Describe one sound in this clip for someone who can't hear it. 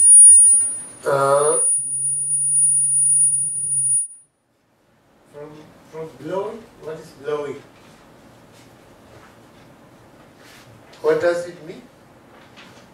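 An older man reads aloud slowly through a clip-on microphone.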